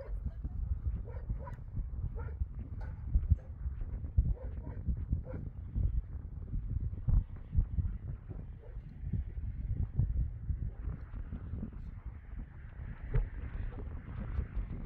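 Wind blows outdoors, buffeting the microphone in gusts.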